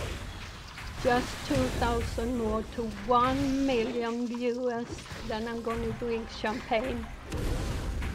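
An elderly woman speaks with animation into a close microphone.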